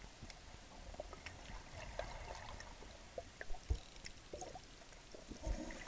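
Water sloshes and bubbles just below the surface.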